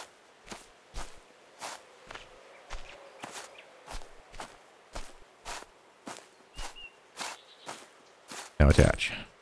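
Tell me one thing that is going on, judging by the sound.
Footsteps swish through tall grass at a steady walking pace.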